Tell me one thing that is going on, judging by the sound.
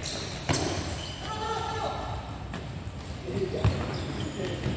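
A ball is kicked with sharp thuds that echo in a large hall.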